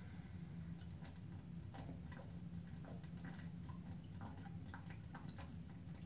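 A man gulps a drink from a bottle.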